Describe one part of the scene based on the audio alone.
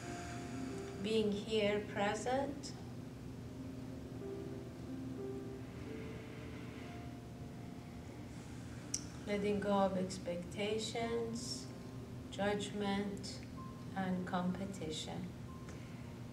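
A woman speaks calmly and slowly nearby.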